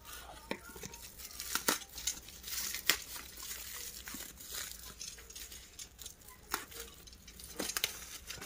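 Plastic packaging crackles as it is handled.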